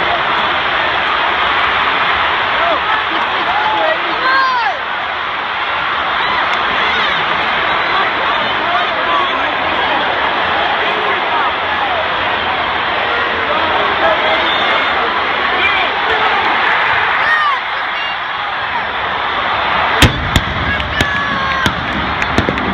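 A large stadium crowd roars and cheers loudly all around.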